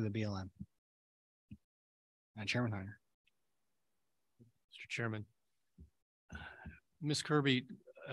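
A man speaks calmly through a microphone in short bursts, heard over an online call.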